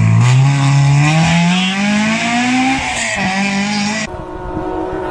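A rally car engine roars as the car speeds past.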